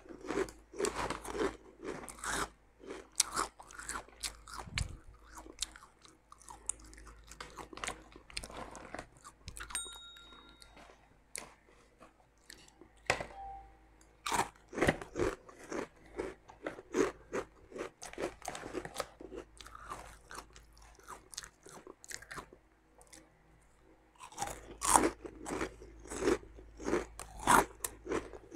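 A foil snack bag crinkles and rustles.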